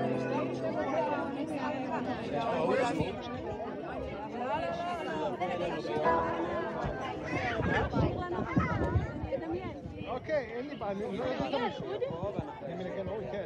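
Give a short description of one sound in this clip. A woman talks with animation close by.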